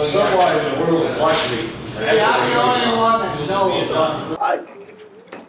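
A middle-aged man speaks forcefully and with animation, close to the microphone.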